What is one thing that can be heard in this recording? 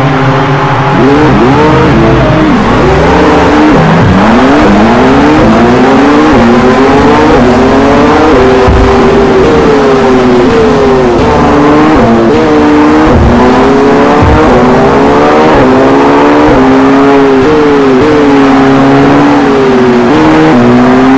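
A race car engine roars, rising and falling in pitch as it shifts through gears.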